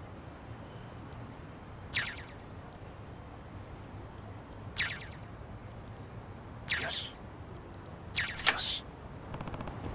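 Metal lock pins click and scrape as a pick works them.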